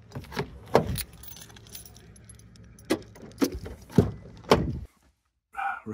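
A van door handle clicks and the door thuds.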